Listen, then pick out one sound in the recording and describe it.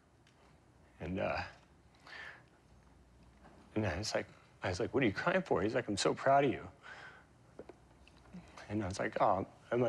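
A man speaks calmly and thoughtfully into a close microphone, pausing between phrases.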